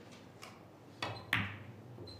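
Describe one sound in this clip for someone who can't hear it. A cue tip strikes a snooker ball with a sharp click.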